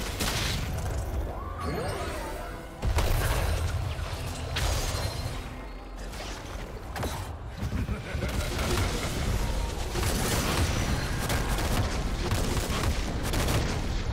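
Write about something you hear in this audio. Game character abilities burst with loud impacts.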